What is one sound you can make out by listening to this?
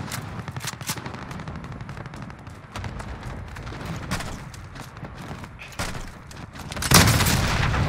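Footsteps thud quickly on dirt and rock.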